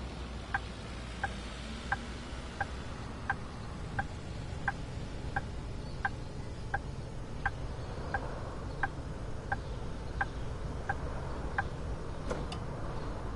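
A bus engine hums steadily at low speed.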